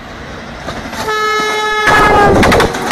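A train horn blares loudly and briefly.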